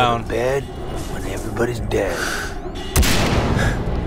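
Gunshots crack sharply, a few times.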